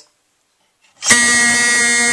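A fire alarm pull handle clicks down.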